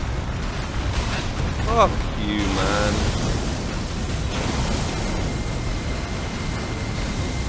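Heavy blows and rumbling crashes of a fight in a game rumble steadily.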